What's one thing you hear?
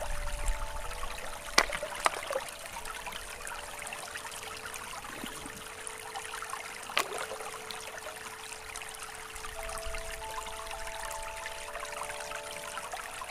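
A shallow stream ripples and splashes over stones.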